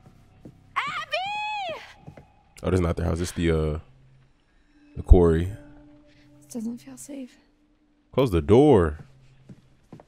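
A woman calls out anxiously.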